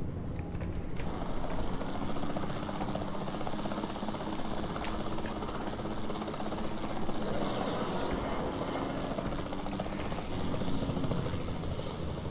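A helicopter engine hums and its rotor whirs steadily.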